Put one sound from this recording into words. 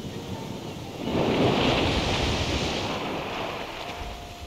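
A whale splashes as it dives under the water.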